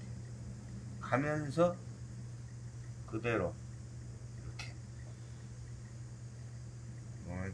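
Chalk scrapes softly across cloth.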